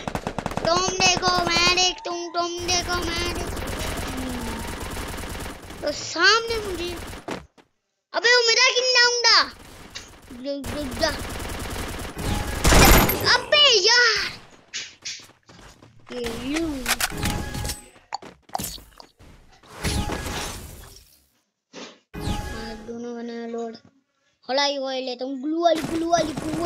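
A young boy talks excitedly and close to a microphone.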